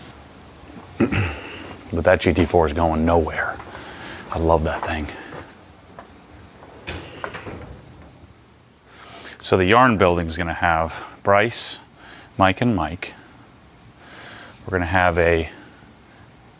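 A man talks calmly and clearly close by, as if into a microphone.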